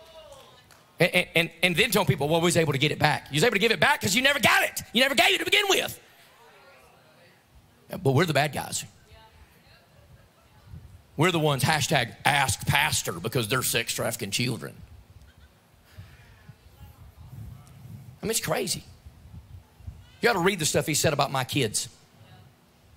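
A man speaks with animation into a microphone through loudspeakers in a large hall, in bursts with pauses.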